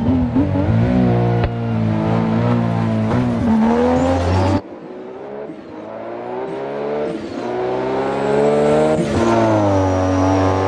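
A car engine revs loudly, its pitch rising and dropping as it shifts gears.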